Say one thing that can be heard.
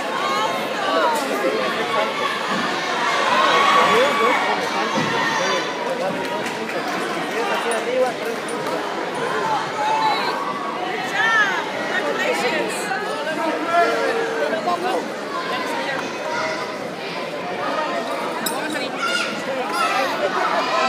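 A large crowd chatters throughout a big echoing hall.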